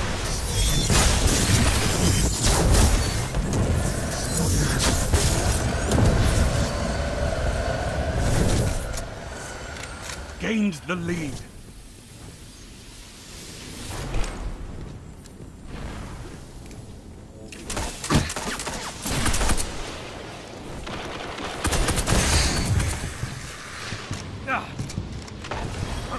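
Guns fire in quick bursts.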